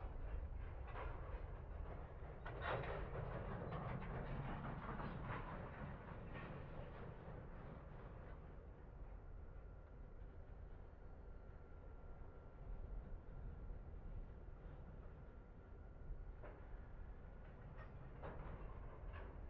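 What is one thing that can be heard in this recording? A diesel locomotive engine rumbles low and steadily.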